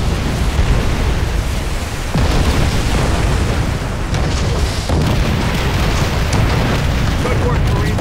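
Waves splash in shallow surf.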